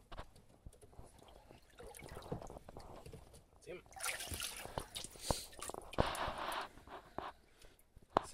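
Water splashes and drips.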